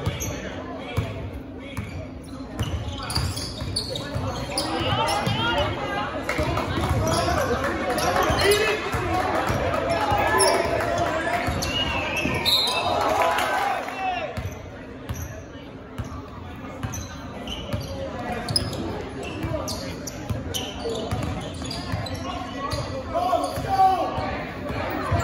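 A basketball bounces repeatedly on a hard court in a large echoing gym.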